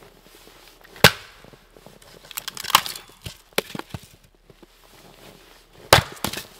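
An axe splits logs with sharp, loud cracks.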